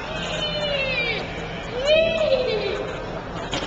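A young child squeals with delight.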